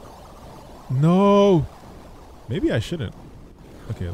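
Electronic game sound effects chirp and whoosh.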